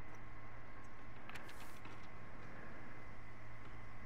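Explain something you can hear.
Paper rustles softly as a sheet is picked up.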